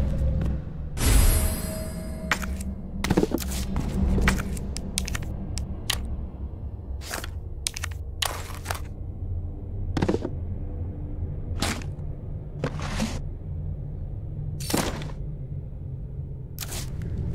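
Short electronic clicks and chimes sound again and again as menu items are picked.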